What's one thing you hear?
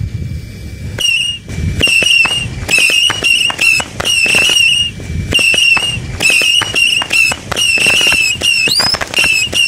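Rockets whistle as they rise into the sky.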